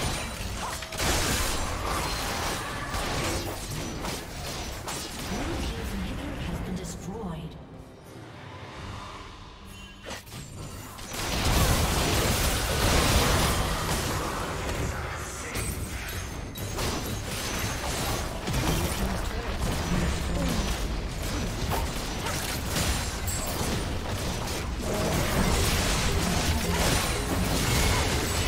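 Game spell effects and attacks crackle and boom in a fast battle.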